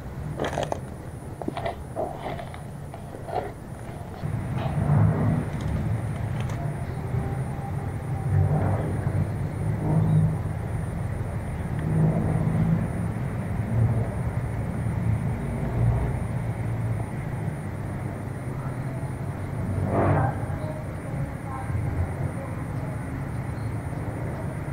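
Leaves and branches rustle close by as someone pushes through dense brush.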